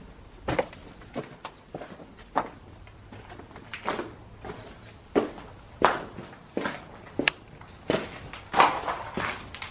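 Footsteps crunch over loose debris and broken plaster.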